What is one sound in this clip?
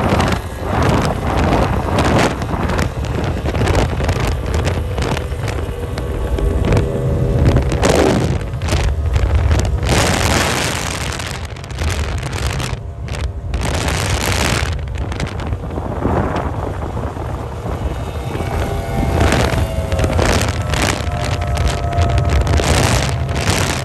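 Water sprays and churns behind the speeding boats.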